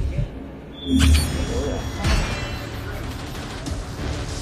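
A short triumphant musical fanfare plays.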